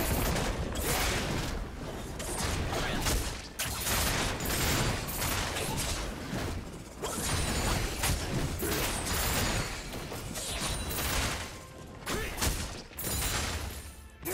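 Magic blasts and weapon strikes hit monsters in a video game.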